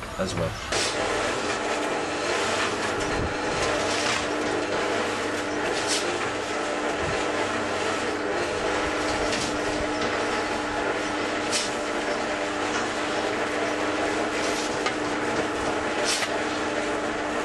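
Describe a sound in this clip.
A shovel scrapes into sand.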